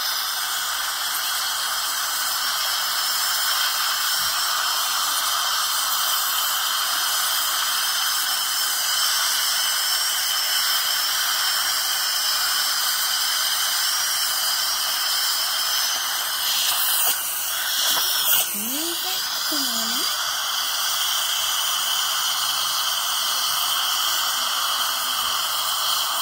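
A dental suction tube hisses and slurps steadily.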